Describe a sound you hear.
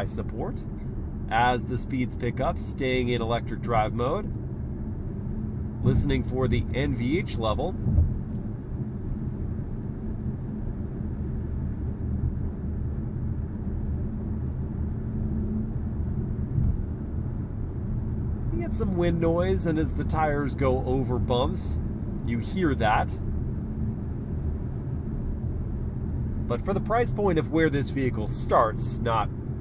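A car engine hums steadily with road noise inside the cabin.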